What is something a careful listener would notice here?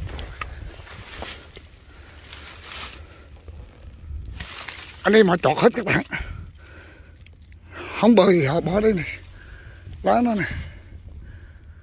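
Leaves and twigs rustle as a hand brushes through low plants.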